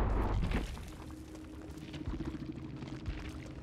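Footsteps rush through tall, rustling grass.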